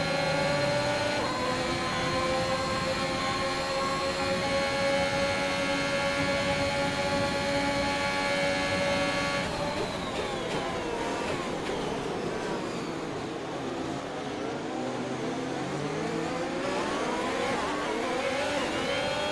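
A racing car engine screams at high revs, then drops in pitch as the car brakes.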